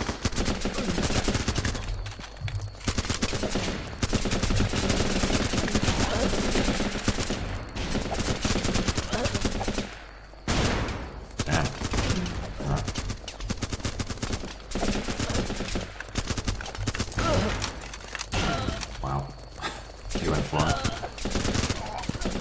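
Rapid gunfire crackles and pops.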